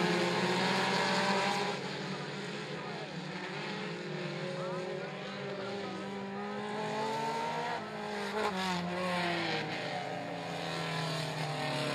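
Several race car engines roar and rev loudly.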